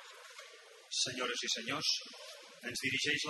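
A man speaks loudly through a microphone in an echoing hall.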